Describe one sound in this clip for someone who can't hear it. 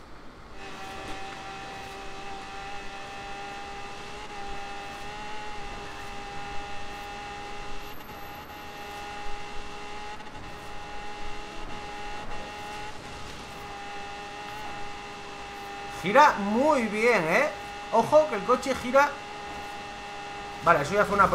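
A car engine drones steadily at high speed.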